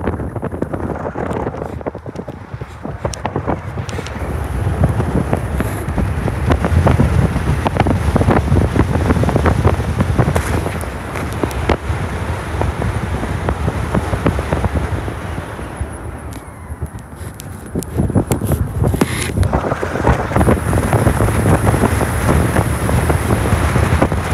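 Wind buffets the car's open window.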